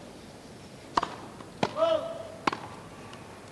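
A tennis ball is struck hard with a racket several times in a quick rally.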